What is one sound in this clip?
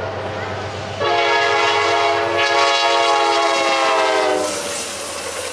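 A train horn blasts loudly.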